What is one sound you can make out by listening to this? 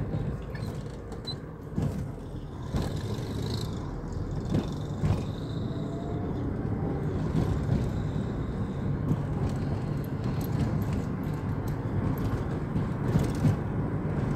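Tyres roll over a rough road with knocks and rattles.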